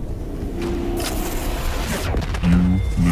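Gunfire rattles rapidly with heavy booms.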